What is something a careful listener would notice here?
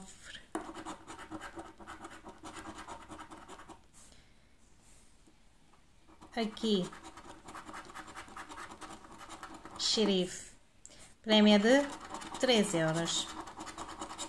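A coin scratches rapidly across a scratch card.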